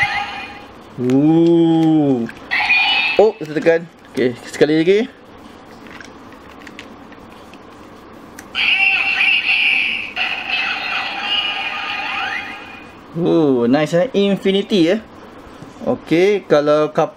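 A toy weapon speaks in a deep electronic voice.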